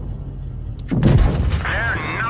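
A shell explodes against a tank with a sharp bang.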